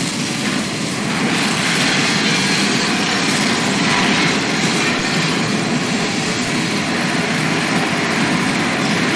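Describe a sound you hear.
Explosions rumble and roar nearby.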